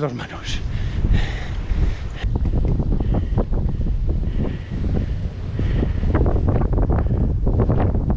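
Strong wind buffets a microphone outdoors.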